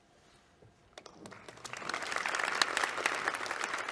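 A small audience applauds in a large hall.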